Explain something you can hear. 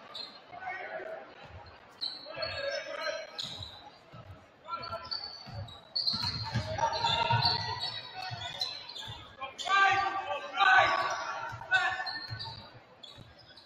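Young men shout and call out in a large echoing gym.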